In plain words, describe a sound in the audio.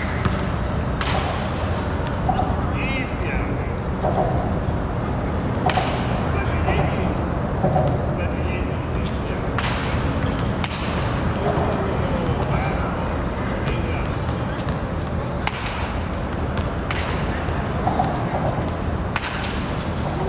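A bat cracks sharply against a baseball, again and again.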